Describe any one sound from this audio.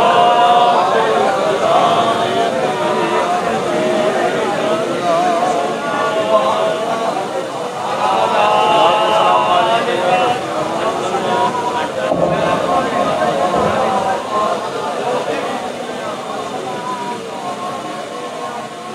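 A young man recites melodiously into a microphone, heard through loudspeakers in a reverberant space.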